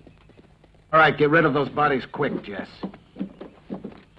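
A man speaks loudly and angrily.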